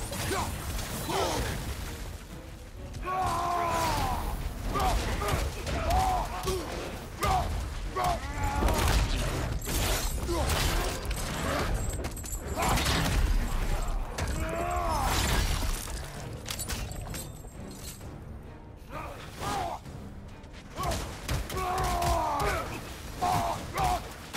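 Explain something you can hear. Heavy blows and weapon strikes land in a fast fight.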